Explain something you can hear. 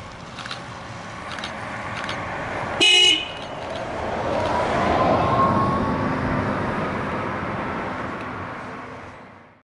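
Tyres hiss on a road surface as a bus passes.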